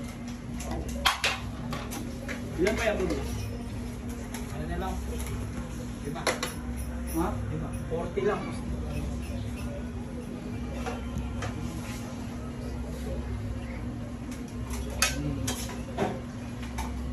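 Metal plates clink as they are set on a tiled floor.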